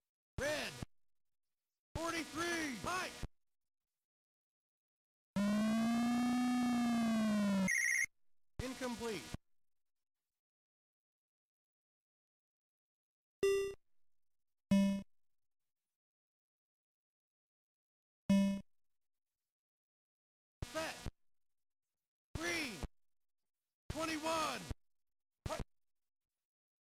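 Short electronic game sound effects chirp and buzz in bursts.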